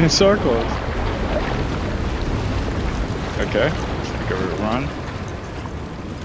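Waves of water rush and roar nearby.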